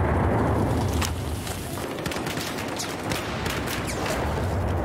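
Gunshots crack in short bursts, echoing down a hard corridor.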